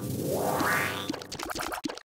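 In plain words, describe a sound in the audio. A bright game jingle rises as an item is picked up.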